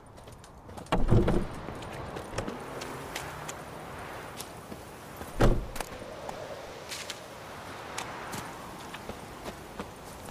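Footsteps run quickly over dirt and grass outdoors.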